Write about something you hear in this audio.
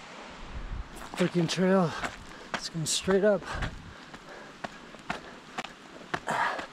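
Footsteps crunch on a rocky dirt path.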